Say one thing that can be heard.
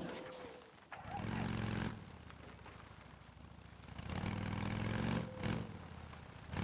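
A motorcycle engine revs loudly in two bursts and idles between them.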